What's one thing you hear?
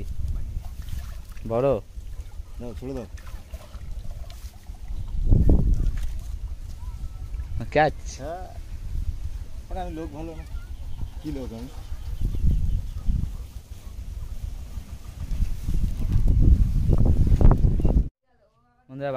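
Water sloshes and splashes as a man wades through it.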